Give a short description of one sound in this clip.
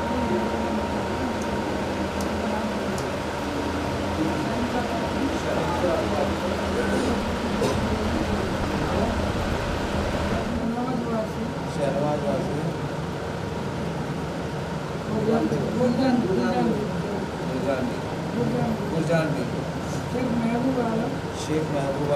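A man recites a prayer in a steady, chanting voice.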